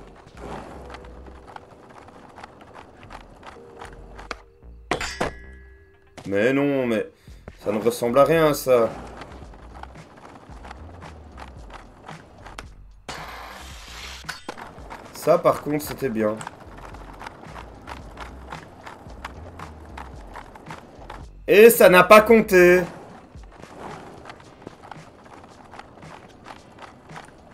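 Skateboard wheels roll and clatter over rough pavement.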